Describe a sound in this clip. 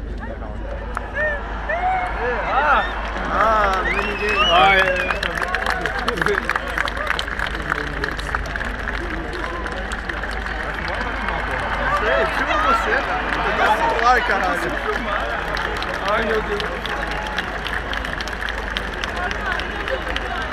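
A crowd cheers and whistles loudly, heard from within.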